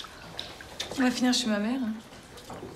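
A young woman speaks with some urgency nearby.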